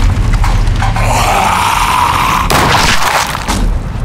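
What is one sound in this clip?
A zombie snarls and growls up close.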